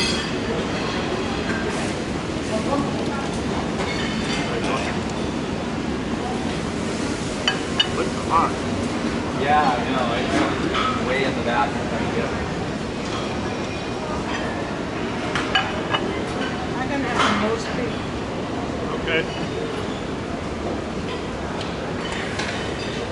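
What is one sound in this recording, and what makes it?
A steady murmur of voices and clatter fills a busy room.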